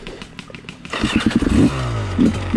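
A motorcycle engine revs up loudly.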